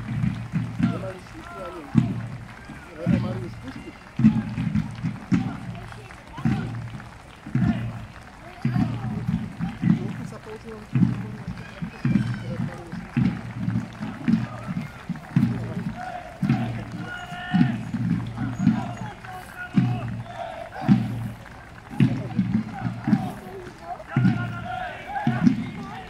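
A crowd of men and women chatters outdoors at a distance.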